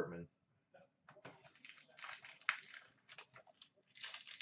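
Card packs rustle and tap as a hand handles them.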